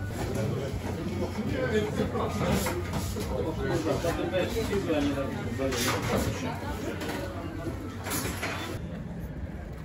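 A young man talks with a customer.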